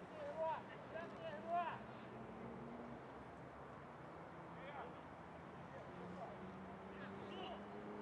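Young players shout to each other from across an open field.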